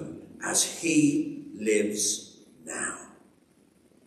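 An older man speaks calmly into a microphone in an echoing hall.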